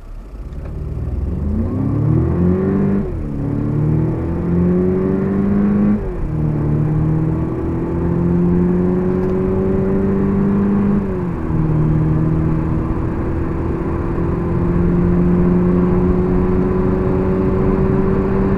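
A car engine revs hard as the car speeds up, dropping in pitch briefly at each gear change.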